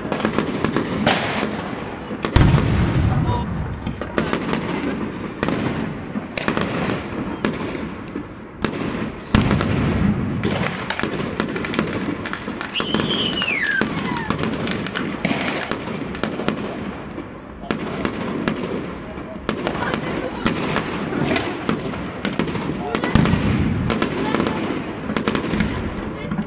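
Aerial firework shells burst with deep booms that echo off buildings.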